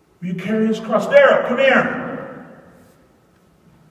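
A man speaks loudly through a microphone, echoing around a large hall.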